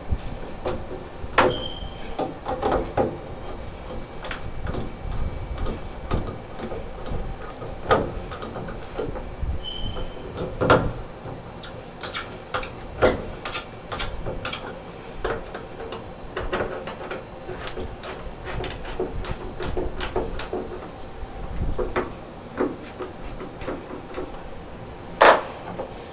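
A screwdriver scrapes and clicks against metal.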